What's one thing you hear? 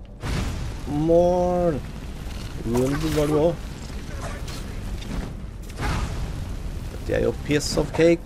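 A fire spell roars and crackles.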